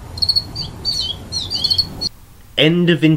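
A teenage boy speaks loudly outdoors.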